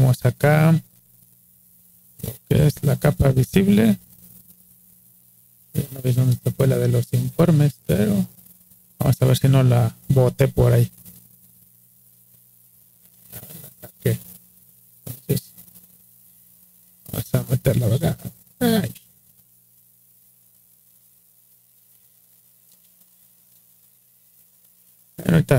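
A man talks calmly and closely into a microphone, in bursts with pauses.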